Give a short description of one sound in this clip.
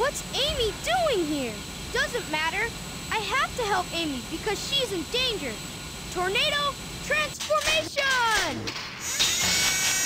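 A young cartoon character speaks with animation in a high voice.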